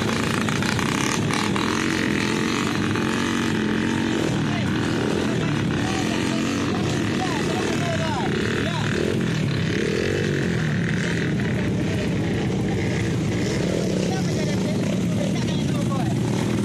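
Dirt bike engines rumble and rev steadily close by.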